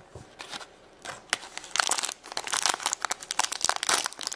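Foil wrapping crinkles and rustles as it is peeled off.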